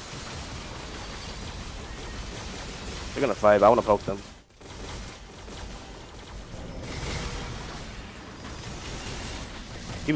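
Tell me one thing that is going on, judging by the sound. Video game combat effects crackle and whoosh.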